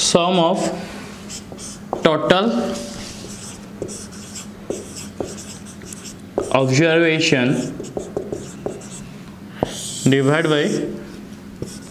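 A young man speaks slowly and clearly, close by, with pauses between phrases.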